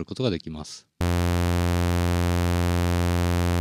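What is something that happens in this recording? A synthesizer plays a steady, buzzing low tone.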